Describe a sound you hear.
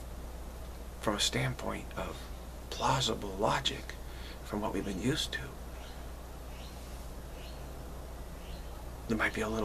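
A middle-aged man speaks calmly and close to a microphone, in short bursts with pauses.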